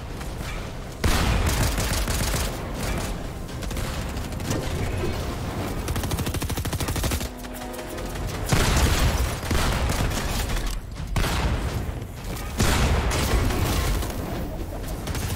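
Gunshots and building noises from a video game ring out in quick bursts.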